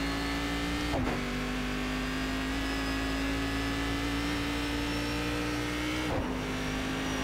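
A racing car engine briefly dips as the gears shift.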